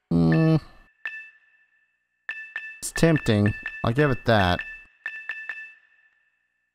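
Short chiming clicks sound as menu items are selected.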